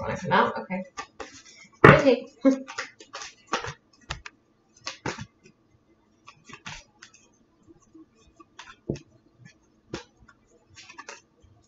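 Cards are shuffled by hand with soft flicking and tapping.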